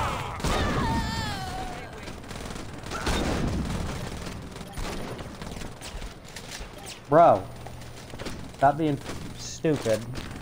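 Gunshots ring out in sharp bursts.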